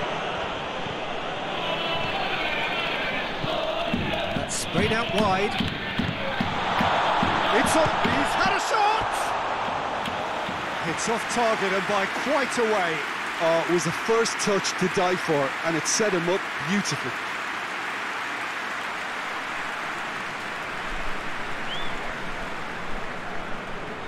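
A large crowd roars and murmurs steadily in a stadium.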